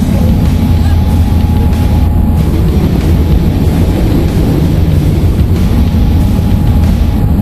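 Wind rushes loudly through an open aircraft door.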